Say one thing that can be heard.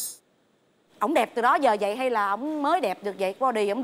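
A woman speaks emotionally through a microphone.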